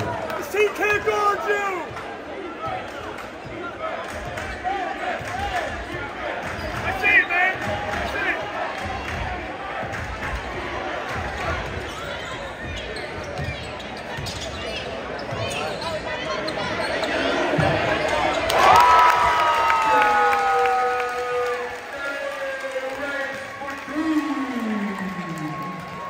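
A large crowd murmurs and chatters in an echoing gym.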